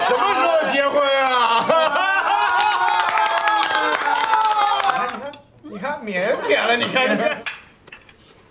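Several women laugh loudly.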